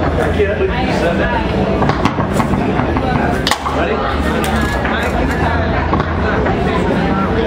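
A foosball clacks against the table walls.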